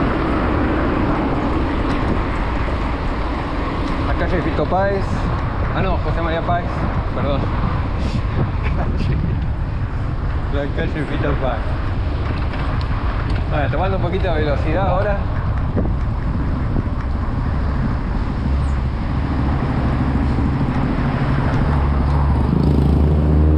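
Wind rushes and buffets steadily against a moving bicycle rider.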